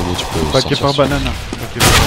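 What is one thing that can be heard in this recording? A pistol fires sharp gunshots.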